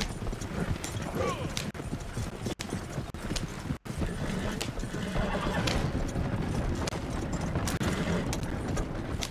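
Horse hooves clop steadily.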